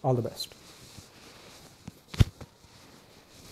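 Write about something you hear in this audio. Footsteps knock on a hard floor nearby.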